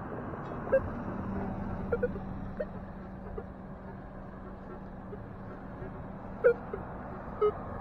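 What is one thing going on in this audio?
A metal detector beeps in short bursts as it sweeps over the ground.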